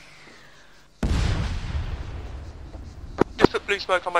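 A heavy explosion booms and rumbles away.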